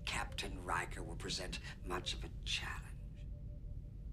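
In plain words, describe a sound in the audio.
An elderly man speaks calmly and clearly, close by.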